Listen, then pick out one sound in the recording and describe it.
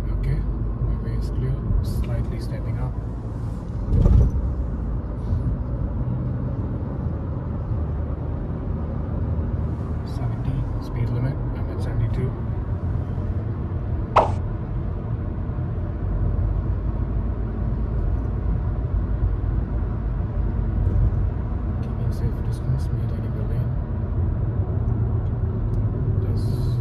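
Road noise rumbles steadily inside a car driving fast on a highway.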